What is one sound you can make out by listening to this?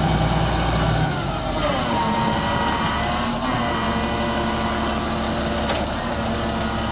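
Hydraulics whine and shift in pitch as a loader's bucket lowers.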